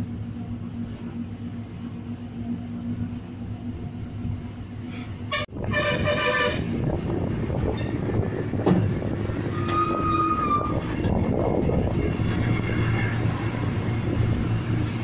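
Tyres roll along a paved road.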